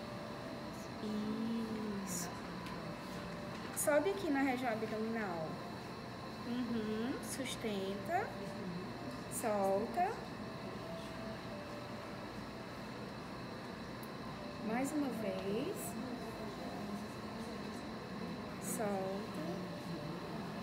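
A woman speaks calmly nearby, in short phrases with pauses.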